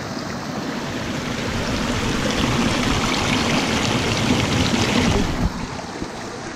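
A stream of water splashes loudly close by.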